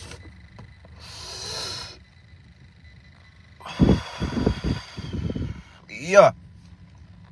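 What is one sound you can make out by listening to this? A man exhales a long breath close by.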